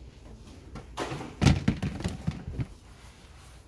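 A plastic storage box lid clatters and knocks.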